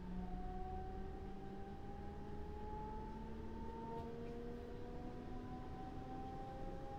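An electric train motor whines, rising slowly in pitch as it speeds up.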